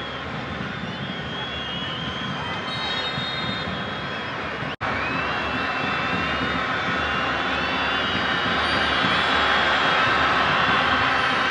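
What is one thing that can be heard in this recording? Spectators whistle loudly.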